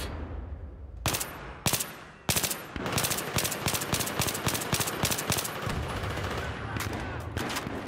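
A rifle fires in rapid bursts of sharp, echoing shots.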